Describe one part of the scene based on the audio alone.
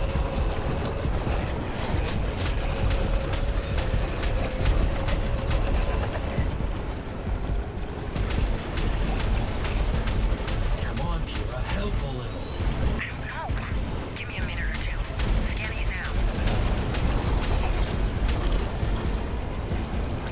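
A game motorbike engine roars steadily at high speed.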